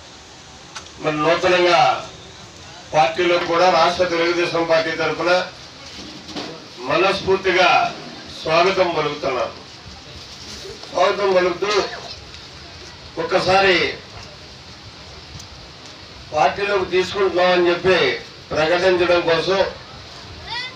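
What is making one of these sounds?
A man speaks forcefully into a microphone through loudspeakers, in bursts with pauses.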